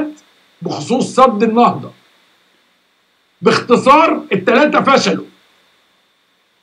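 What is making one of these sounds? A middle-aged man speaks emphatically into a microphone.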